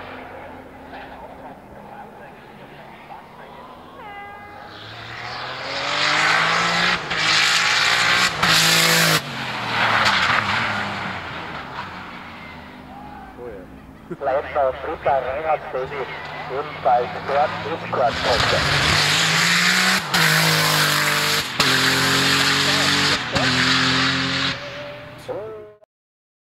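A twin-turbo Porsche 911 race car with a flat-six engine accelerates hard uphill, shifting up through the gears.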